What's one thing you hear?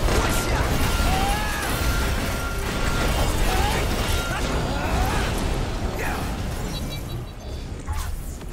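Heavy blasts crash and roar in a loud fight with a huge creature.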